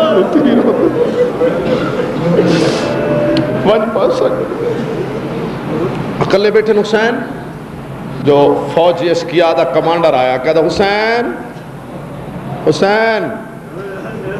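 A man preaches passionately into a microphone over a loudspeaker, his voice rising and echoing.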